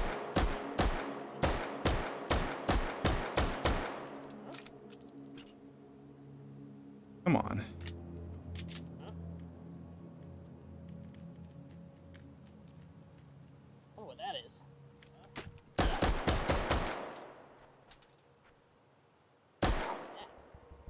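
A pistol fires rapid shots that echo sharply.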